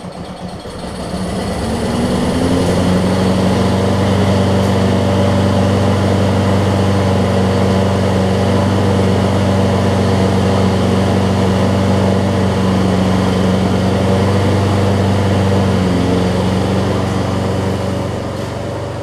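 A lawn mower engine roars to life and runs loudly and steadily.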